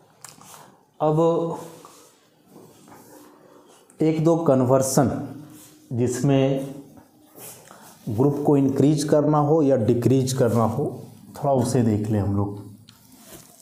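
A man speaks calmly, as if lecturing, close by.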